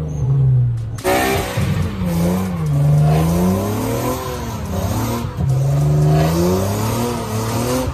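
Tyres screech and squeal during a burnout.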